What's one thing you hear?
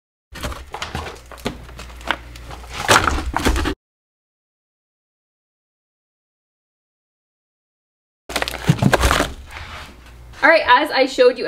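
Plastic packaging crinkles and rustles as frozen packs are handled.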